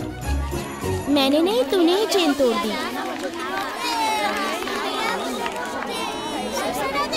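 Children chatter and laugh all around in a room.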